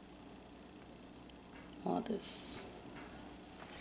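Thick sauce pours into a pot of food.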